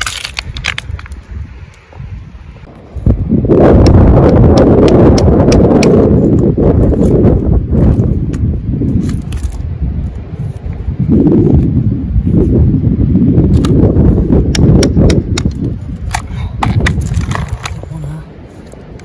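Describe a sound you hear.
A hammer strikes a chisel into rock with sharp clinks.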